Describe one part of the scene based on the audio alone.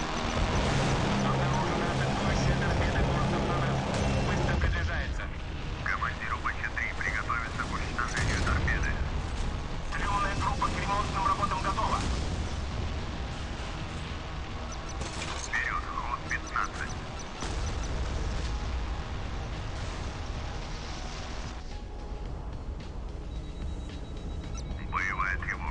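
A jet engine roars loudly.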